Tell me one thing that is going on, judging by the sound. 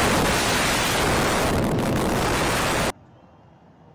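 A tall building collapses with a deep, thundering roar.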